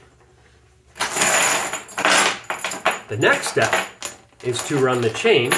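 A metal chain rattles and clinks.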